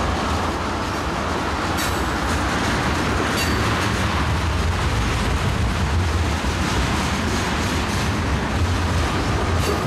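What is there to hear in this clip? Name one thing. Freight train cars rumble past close by.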